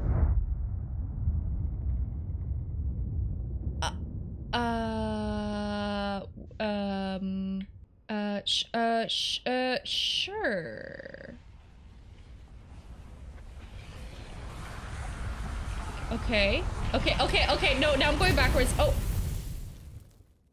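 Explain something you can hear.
A young woman exclaims loudly and with animation into a close microphone.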